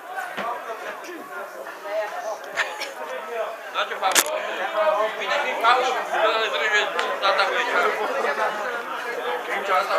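Several men talk nearby, outdoors.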